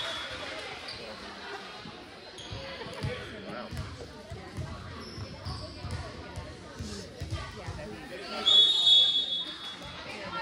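Girls chatter and call out around a court.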